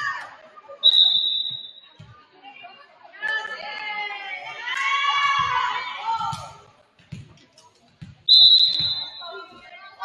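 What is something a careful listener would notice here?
A referee's whistle blows short and sharp, twice.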